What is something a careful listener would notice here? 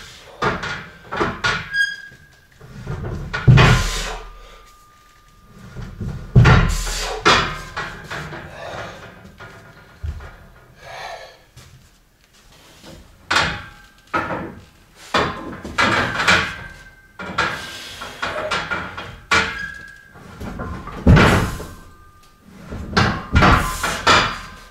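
An elderly man grunts and exhales hard with effort, close by.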